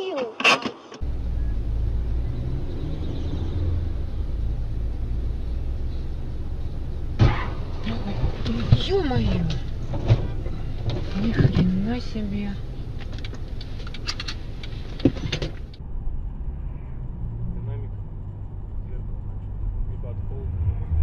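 A car engine hums steadily with road noise from inside a moving car.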